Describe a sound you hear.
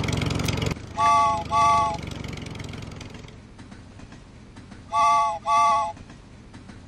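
A toy train's horn toots twice, then twice again.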